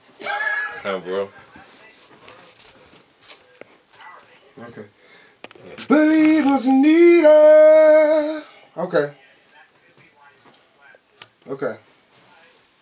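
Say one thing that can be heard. A man sings and raps into a microphone in bursts, close up.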